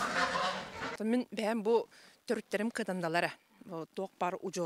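A middle-aged woman speaks calmly and close into a microphone outdoors.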